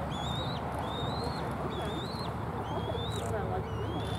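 A young bald eagle flaps its wings among branches.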